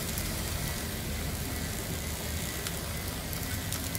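A repair tool hisses softly.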